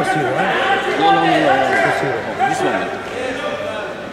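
Two wrestlers thud onto a mat.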